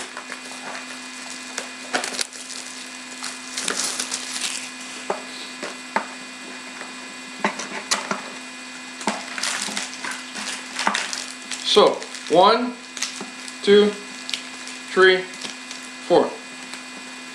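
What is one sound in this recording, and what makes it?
Cardboard packaging rustles and crinkles in hands.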